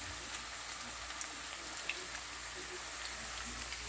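Oil sizzles and crackles as slices fry in a pan.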